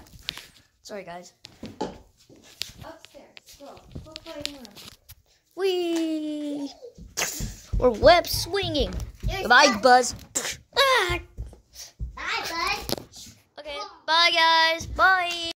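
A young girl speaks excitedly in a high voice close by.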